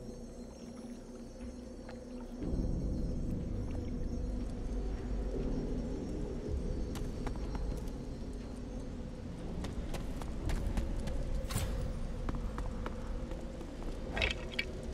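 Torch flames crackle softly.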